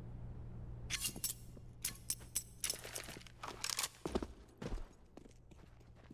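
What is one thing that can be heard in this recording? A knife is drawn with a sharp metallic swish.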